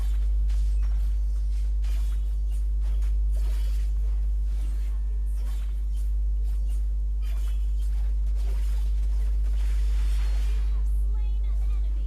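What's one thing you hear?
Video game battle effects clash and burst rapidly.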